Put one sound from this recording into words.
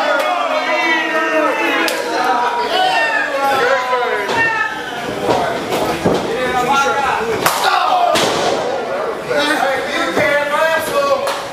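A crowd of men and women shout and cheer in an echoing hall.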